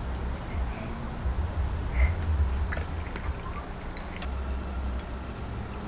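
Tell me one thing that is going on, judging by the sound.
Tea pours from a teapot into a glass.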